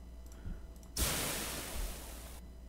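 Meat sizzles in a hot pan.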